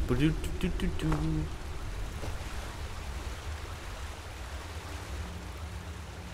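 Water trickles and splashes over rocks.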